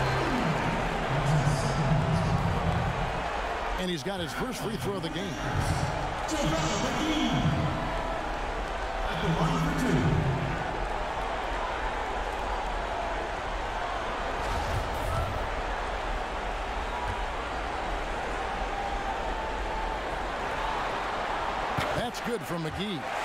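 A large crowd murmurs steadily in a big echoing arena.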